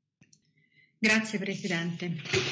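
A middle-aged woman speaks calmly through an online call.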